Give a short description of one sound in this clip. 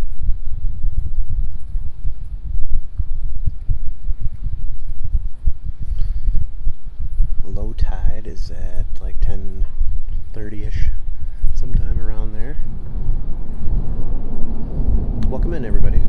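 Wind gusts roughly across the microphone outdoors.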